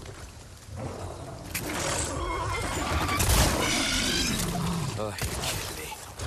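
A beast snarls and roars loudly.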